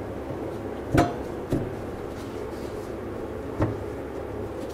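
A plastic cover knocks into place.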